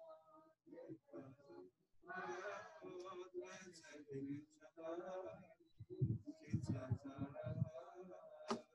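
A man speaks steadily into a microphone close by, reading out or chanting.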